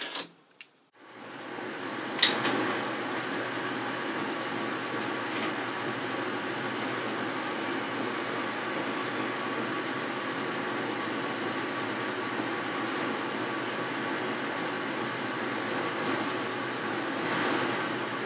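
A lathe runs with a steady whirring hum.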